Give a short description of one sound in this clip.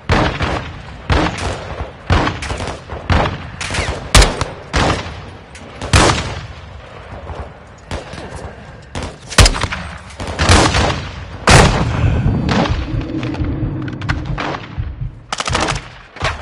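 Rifle shots fire and boom with echoing blasts.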